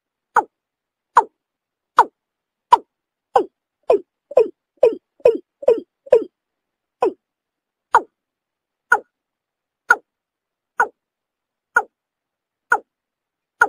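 A bird gives short, sharp calls over and over, faster in the middle and then slowing.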